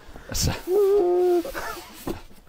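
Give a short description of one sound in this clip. A man groans playfully close by.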